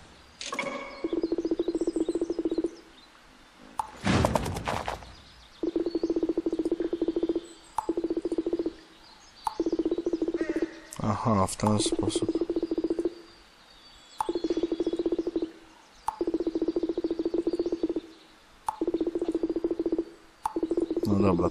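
Rapid electronic blips chatter in short bursts.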